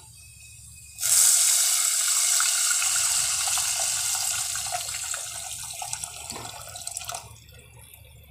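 Water pours splashing into a pot.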